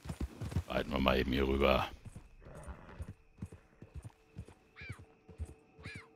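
A horse's hooves thud on the ground at a trot.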